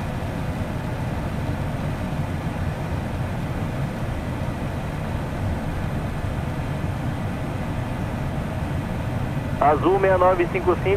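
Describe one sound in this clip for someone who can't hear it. An aircraft engine drones steadily with a low rumble of rushing air.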